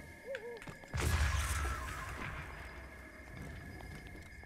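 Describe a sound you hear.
A magical burst booms and crackles.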